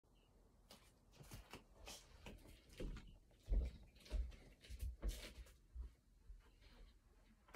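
A plastic sheet crinkles underfoot.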